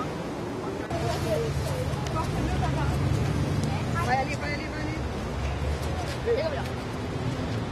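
A woman speaks excitedly nearby.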